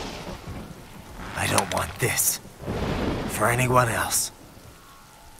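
A young man speaks quietly and tensely, close by.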